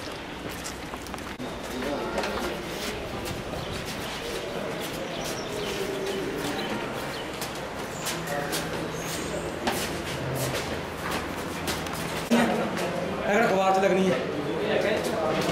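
Footsteps shuffle on a hard floor and stairs.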